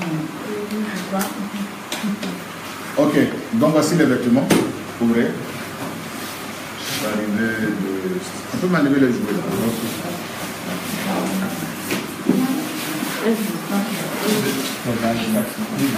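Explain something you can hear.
Several voices murmur and chatter in the background.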